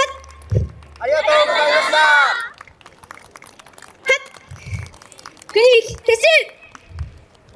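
A group of young men and women shout a chant together outdoors.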